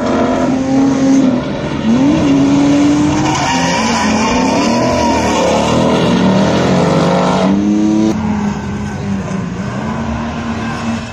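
A car engine revs hard and loud, rising and falling in pitch.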